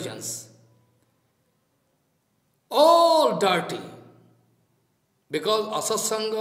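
An elderly man speaks calmly and slowly through a microphone.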